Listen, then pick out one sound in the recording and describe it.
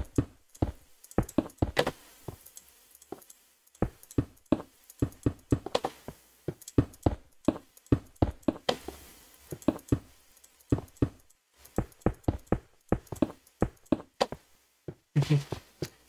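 Stone blocks clack sharply as they are placed, one after another.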